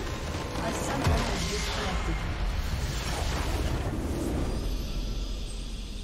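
A huge blast explodes with a deep rumble.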